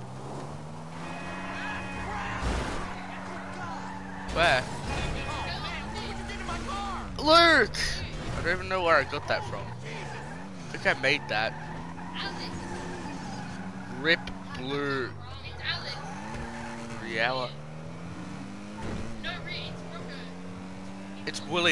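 A car engine revs and hums, rising and falling in pitch.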